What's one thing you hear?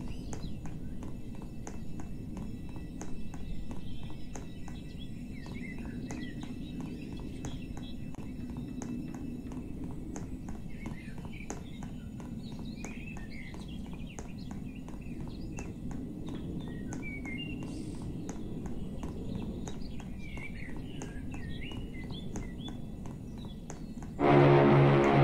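Quick footsteps patter steadily on a hard floor.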